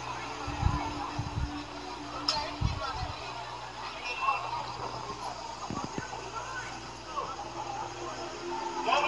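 A crowd of people shouts and murmurs outdoors at a distance.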